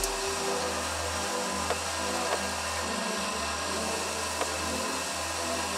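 A belt sander runs with a steady motor hum.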